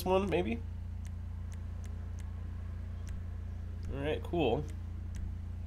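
Soft menu clicks tick several times.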